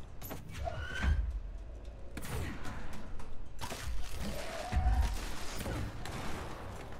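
A pistol fires with heavy booms.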